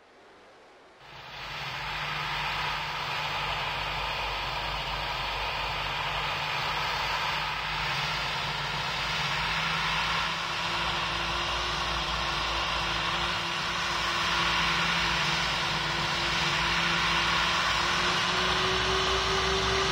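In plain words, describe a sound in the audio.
Jet engines start up and run with a loud, steady whining roar.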